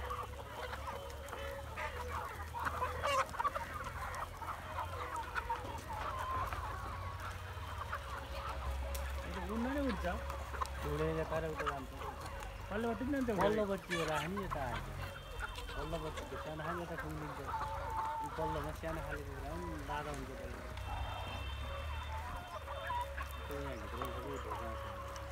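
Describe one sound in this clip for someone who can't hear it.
Many chickens cluck and chatter nearby.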